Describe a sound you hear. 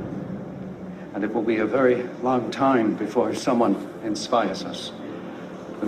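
A middle-aged man speaks formally into a microphone, heard through a loudspeaker.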